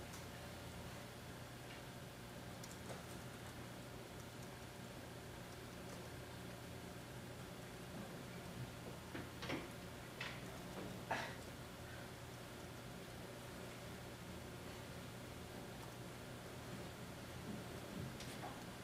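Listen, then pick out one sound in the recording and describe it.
A projector hums steadily.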